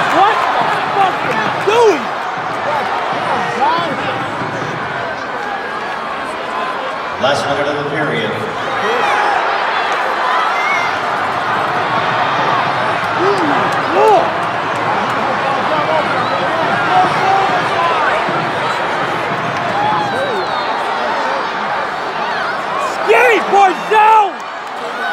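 Spectators nearby shout and cheer loudly.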